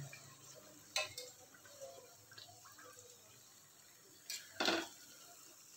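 A metal spatula clinks against a wire strainer.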